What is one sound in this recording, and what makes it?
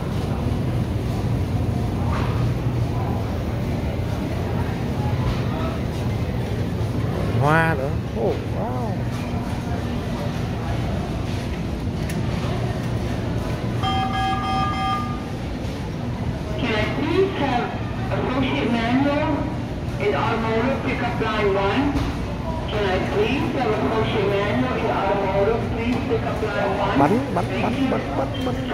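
A crowd murmurs softly in the background.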